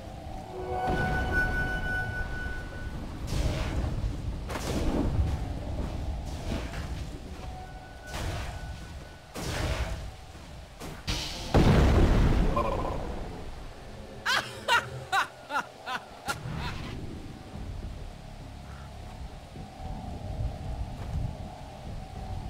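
Game spell effects zap and blast during a fight.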